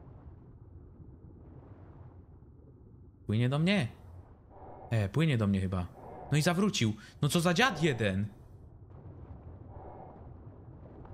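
A muffled underwater rumble drones softly.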